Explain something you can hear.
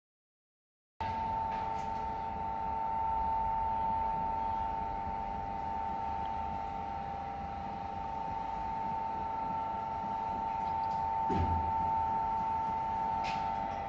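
A large mixing machine hums and whines steadily.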